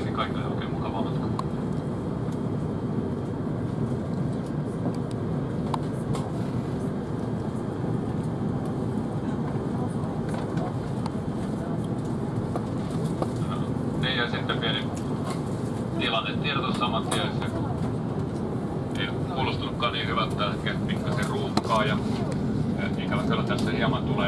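A steady low roar of aircraft cabin air and engines fills the background.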